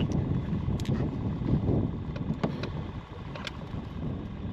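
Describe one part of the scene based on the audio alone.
Small clicks and knocks come from handling gear close by.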